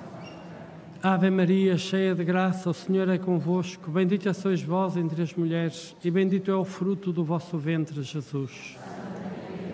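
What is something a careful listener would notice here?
An elderly man chants through a microphone in a large echoing hall.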